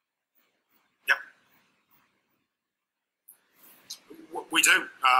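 Another middle-aged man talks in short bursts over an online call.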